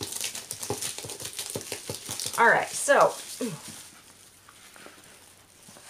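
Plastic bubble wrap crinkles and rustles.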